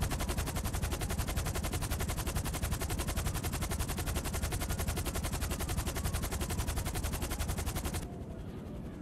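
A helicopter's rotor thumps loudly and steadily overhead.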